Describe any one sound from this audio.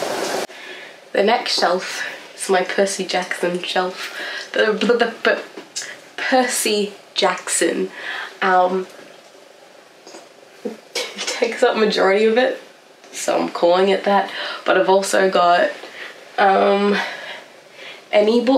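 A young woman talks calmly and cheerfully close by.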